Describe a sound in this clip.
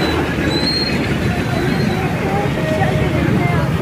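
A boy talks excitedly close by.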